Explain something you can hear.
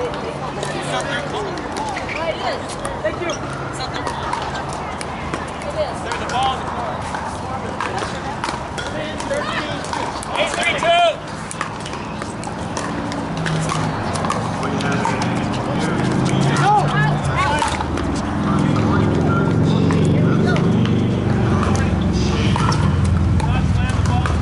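Paddles pop against a ball in a rally on an outdoor court.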